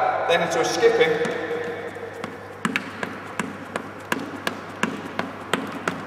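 Sneakers thud rhythmically on a wooden floor in an echoing hall.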